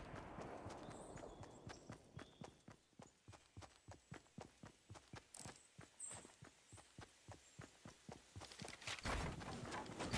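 Quick footsteps thud steadily on grass.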